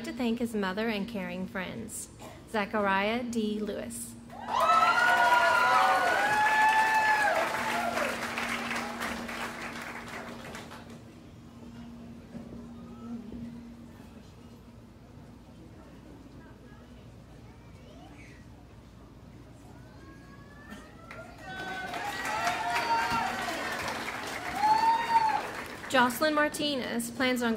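A woman announces names through a loudspeaker in a large hall.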